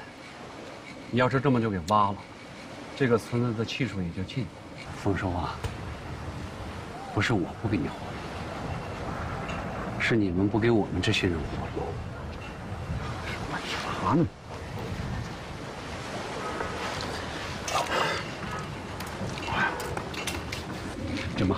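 A second middle-aged man answers in a low, firm voice.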